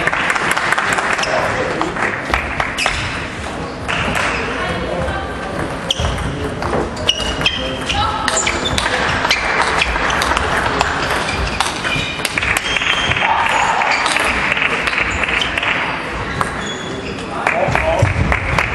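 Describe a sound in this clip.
A table tennis ball clicks back and forth off paddles and the table.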